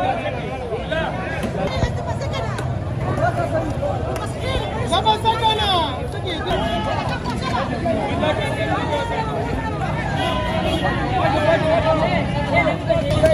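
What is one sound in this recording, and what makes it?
A crowd of men talks and calls out loudly close by.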